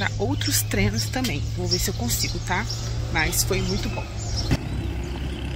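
A young woman talks casually and close by.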